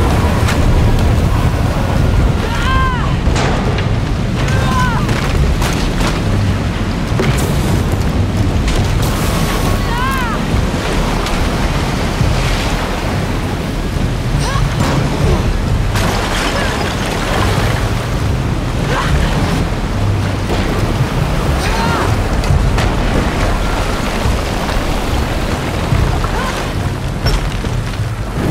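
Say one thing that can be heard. A deep rumble rolls on steadily.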